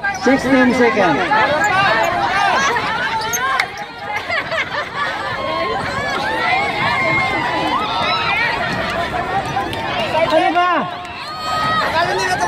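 Men and women chatter with excitement close by.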